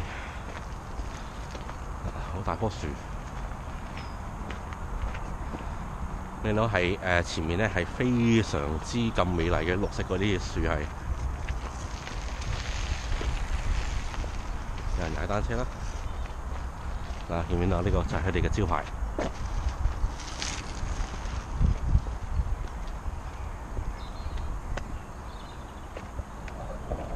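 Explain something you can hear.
Bicycle tyres roll steadily along a gravel path.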